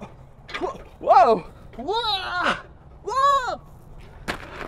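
A man whoops in long, sliding cries.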